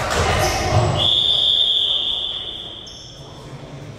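A referee's whistle blows one long, steady blast in a large echoing hall.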